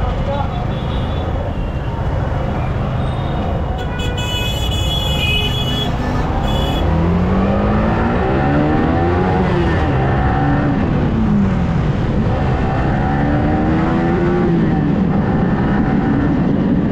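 An engine hums steadily in slow traffic, then revs up and down as the vehicle speeds up.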